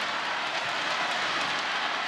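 Plastic thundersticks clatter rapidly in the crowd.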